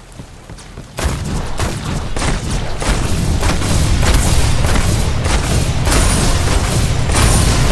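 Rapid gunfire and blasts crackle in a fight.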